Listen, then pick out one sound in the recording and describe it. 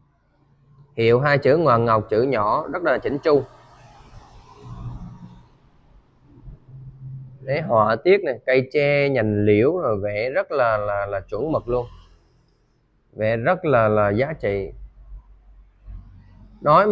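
A young man speaks with animation close to the microphone.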